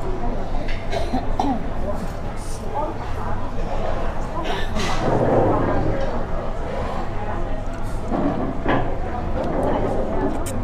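A woman slurps noodles.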